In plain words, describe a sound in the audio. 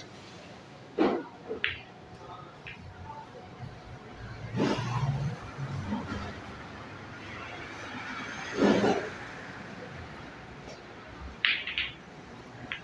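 Pool balls knock against each other and roll.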